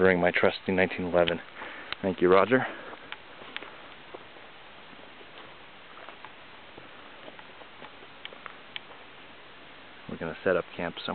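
A man speaks close by, calmly.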